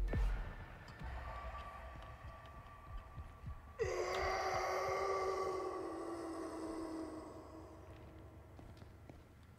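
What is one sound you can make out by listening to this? Heavy footsteps thud on wooden floorboards.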